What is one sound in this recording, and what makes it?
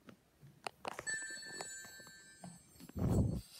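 A tablet plays a startup chime.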